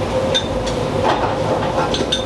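Metal tongs clink against a steel plate.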